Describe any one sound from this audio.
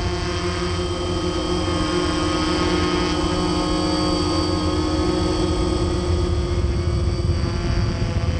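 A drone's propellers whine and buzz steadily close by.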